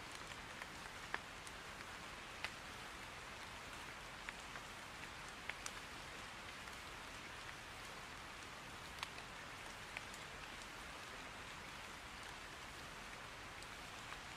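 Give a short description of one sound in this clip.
Steady rain patters down, with occasional sharp drips.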